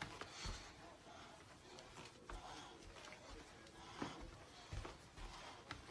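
Small feet patter on a hard floor as a toddler dances.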